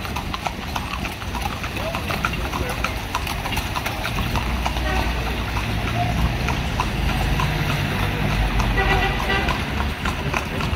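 Car traffic rumbles past outdoors.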